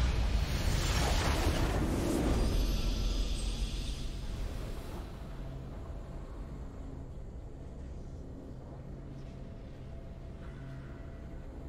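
A triumphant game fanfare swells.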